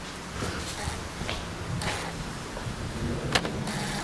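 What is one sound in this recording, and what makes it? Footsteps clang on metal stairs.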